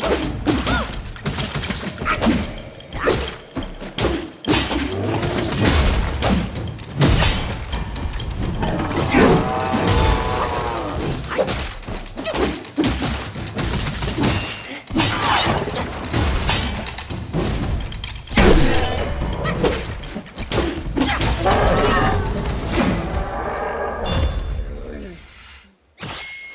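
Heavy weapons clash and thud in a fight.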